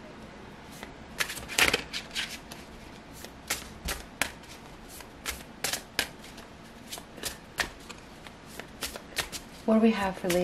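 Playing cards shuffle with quick soft flicks and clicks.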